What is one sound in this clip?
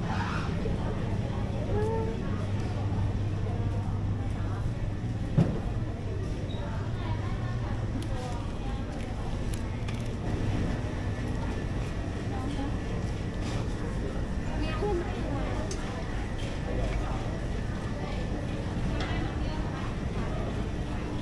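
Refrigerated display cases hum steadily.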